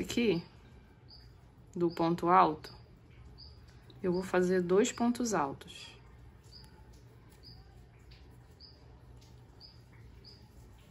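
A crochet hook softly scrapes and pulls through yarn.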